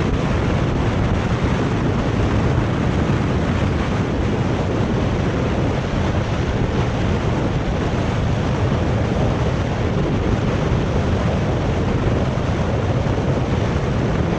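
Wind rushes loudly and steadily past a fast-moving bicycle.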